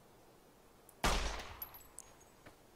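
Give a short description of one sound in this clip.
A rifle fires a single loud shot that echoes away.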